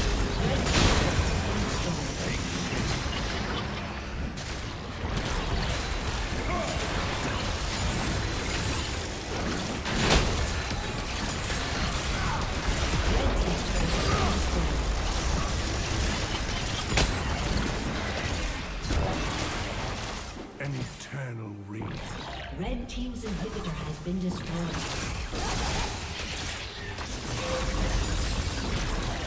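Video game combat sounds clash, with spell blasts and hits.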